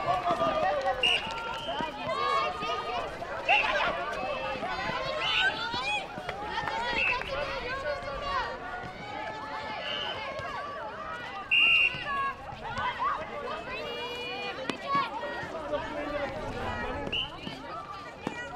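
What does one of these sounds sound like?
Sports shoes squeak sharply on a hard court.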